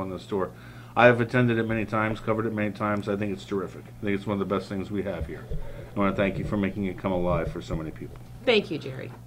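An elderly man talks calmly into a microphone.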